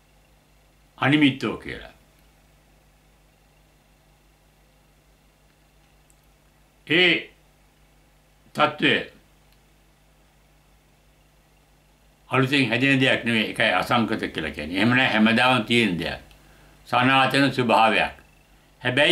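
An elderly man speaks calmly and slowly close by, with long pauses.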